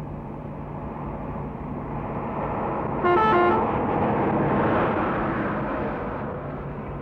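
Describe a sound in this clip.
A truck roars up from behind and passes close by.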